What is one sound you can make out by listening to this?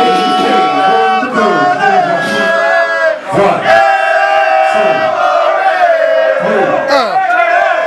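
Loud music with a singing voice plays through speakers.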